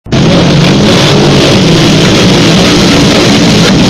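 A motorcycle engine roars loudly.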